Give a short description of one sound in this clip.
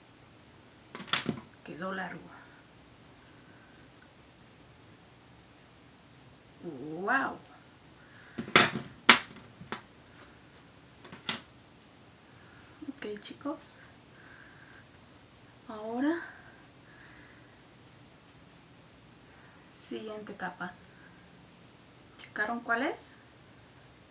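A woman speaks calmly into a clip-on microphone, close by, in short phrases with pauses.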